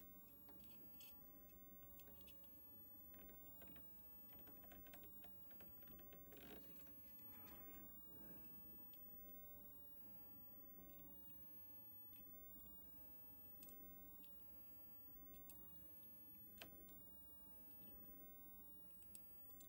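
Solder sizzles and hisses softly as a soldering iron touches a circuit board.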